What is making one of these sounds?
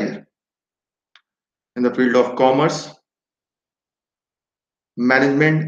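A man speaks calmly into a microphone in an online call.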